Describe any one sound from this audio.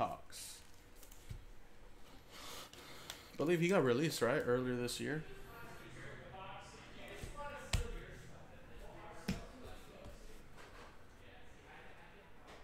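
Cards slide and tap against each other in hands.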